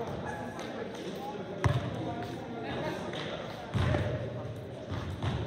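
Voices of players and people chatter in a large echoing gym.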